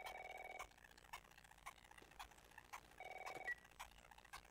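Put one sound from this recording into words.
A phone rings twice.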